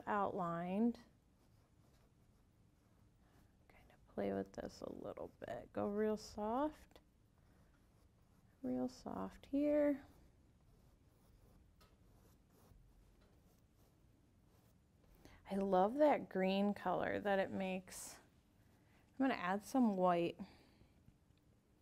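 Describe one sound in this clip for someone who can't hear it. A woman talks calmly and cheerfully, as if explaining, close to a microphone.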